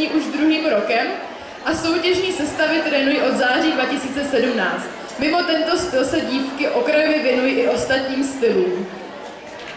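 A young woman announces over a loudspeaker in a large echoing hall.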